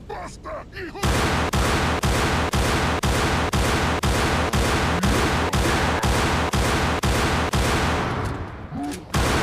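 Gunshots fire in a fast, steady burst.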